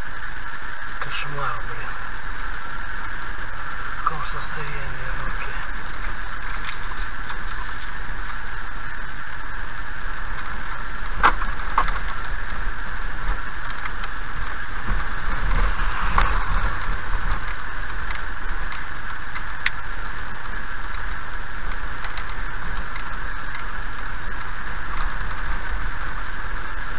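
A car engine hums steadily while driving slowly.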